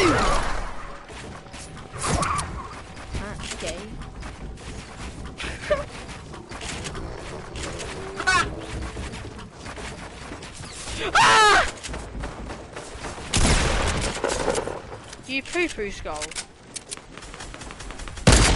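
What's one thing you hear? Wooden walls and ramps thud and clatter into place in a video game.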